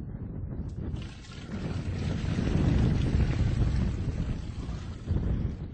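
Water pours and splashes into a metal can.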